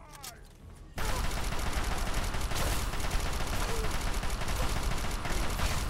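A heavy gun fires in a rapid, continuous burst.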